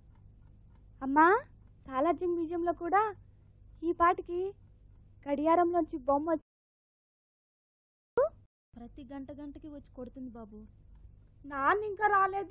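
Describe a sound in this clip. A woman speaks firmly nearby.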